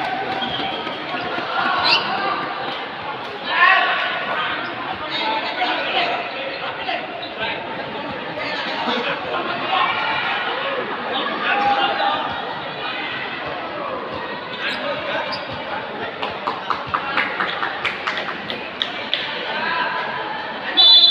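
A crowd of spectators chatters and cheers loudly in a large echoing hall.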